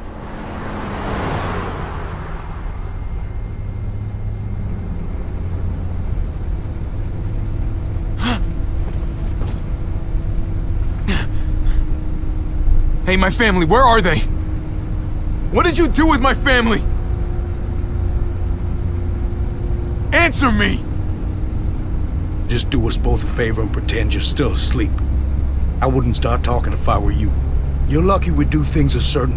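A vehicle engine rumbles low and steadily.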